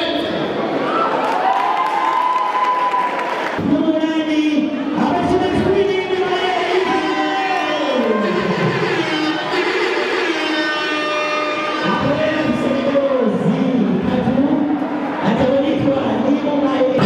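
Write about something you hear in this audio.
A group of women sing together in loud, sustained voices.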